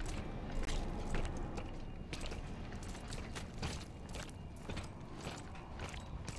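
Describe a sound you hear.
Heavy boots crunch steadily over debris.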